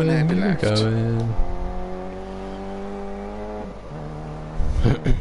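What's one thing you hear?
A rally car engine roars at high revs.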